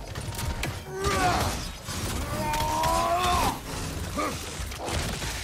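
Creatures snarl and shriek loudly.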